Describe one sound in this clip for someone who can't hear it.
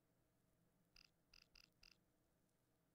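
Short electronic menu blips sound several times in quick succession.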